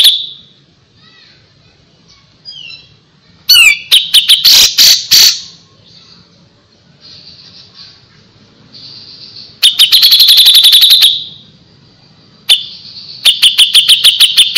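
A small songbird sings loud, rapid, chattering trills in bursts.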